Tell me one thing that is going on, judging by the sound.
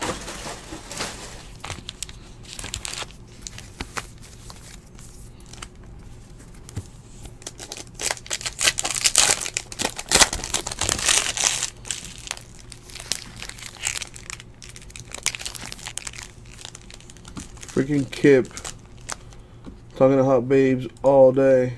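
Foil card wrappers crinkle and rustle in hands.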